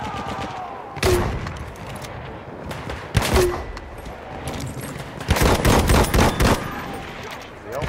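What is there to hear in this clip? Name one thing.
A machine gun fires in rapid, loud bursts.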